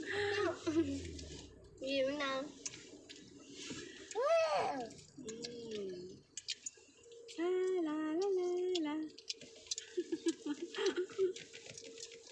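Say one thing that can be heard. A young boy talks and sings playfully close by.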